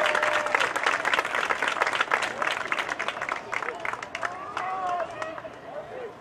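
A crowd claps outdoors.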